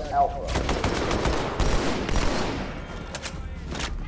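A rifle clicks and clatters as it is reloaded.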